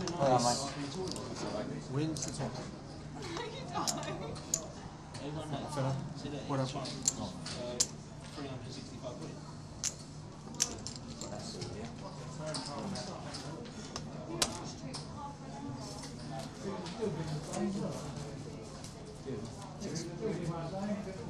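Playing cards slide and flick across a felt table.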